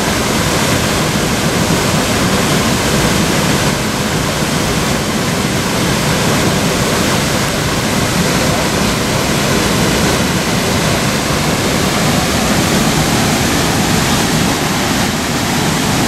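Water splashes as swimmers paddle.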